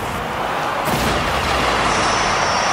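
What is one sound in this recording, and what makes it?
A goal explosion booms in a video game.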